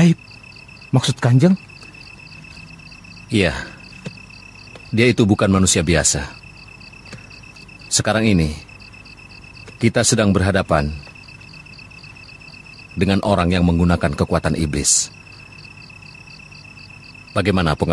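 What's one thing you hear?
A man speaks in a low, serious voice, in short bursts with pauses.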